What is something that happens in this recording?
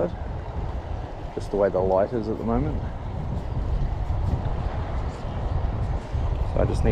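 Water in a river rushes and gurgles nearby.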